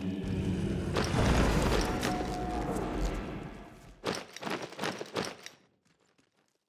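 A triumphant fanfare plays and fades out.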